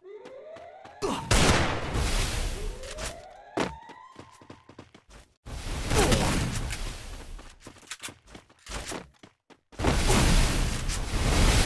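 A wall of foam bursts up with a loud rushing whoosh.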